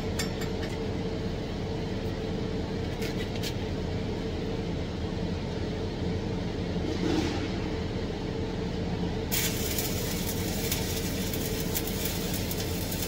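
A fume extractor hums steadily.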